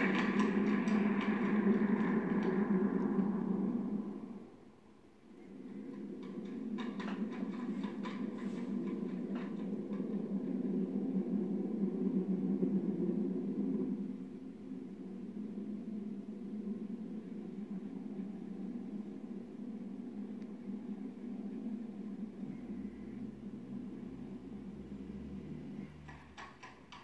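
Low, droning game music plays from a television's speakers.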